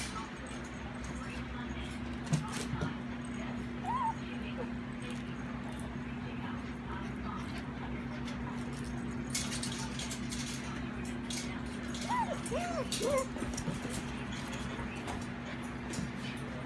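Puppies scuffle and scratch on soft bedding.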